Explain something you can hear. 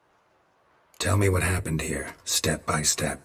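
A man speaks in a low, gravelly voice, calm and close.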